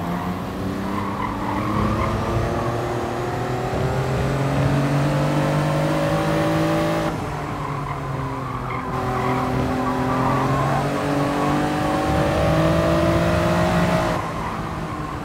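A racing car engine revs high, rising in pitch through each gear and dropping at each shift.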